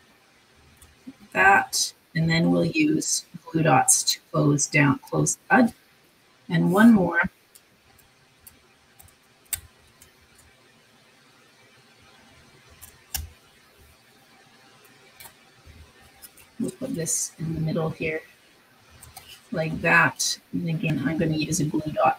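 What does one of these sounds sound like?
Small paper pieces rustle and tap softly under fingers.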